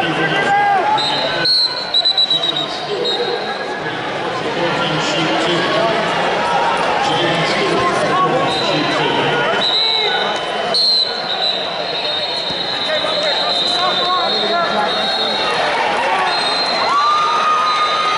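Sharp whistles blow in a large hall.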